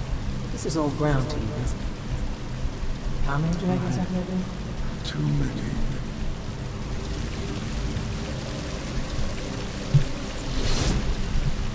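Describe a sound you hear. Rain pours down steadily.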